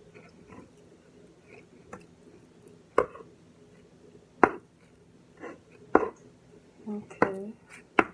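A knife chops on a wooden board with sharp knocks.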